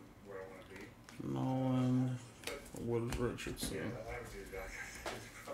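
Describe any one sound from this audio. Trading cards flick and rustle in a hand.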